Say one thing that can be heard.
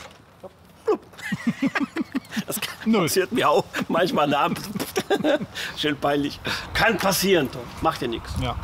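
A middle-aged man talks and laughs cheerfully, close by, outdoors.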